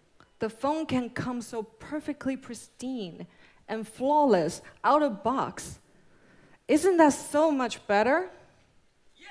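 A young woman speaks calmly into a microphone in a large hall.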